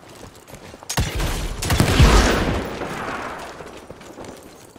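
An explosion bursts with a loud, rumbling roar.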